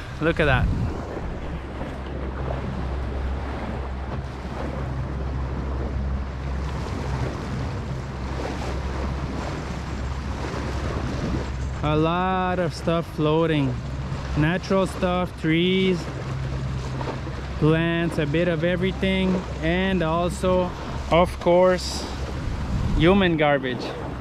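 Wind blows over the microphone on open water.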